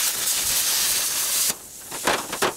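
A cutting tool hisses through scrap steel.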